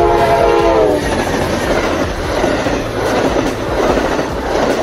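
A passenger train rushes past close by with a loud rumbling roar.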